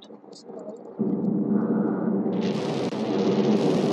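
A jetpack roars steadily.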